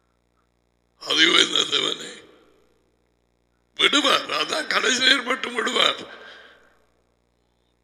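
A middle-aged man speaks into a close headset microphone.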